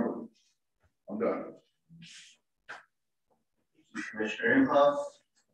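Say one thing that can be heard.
A man speaks into a microphone, heard through an online call.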